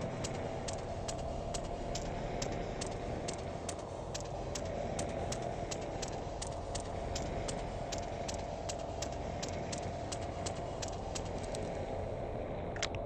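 Footsteps thud steadily on a hard floor and stairs.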